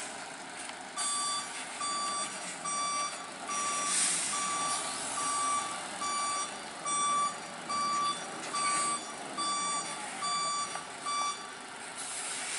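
A truck's warning alarm beeps in a steady repeating rhythm.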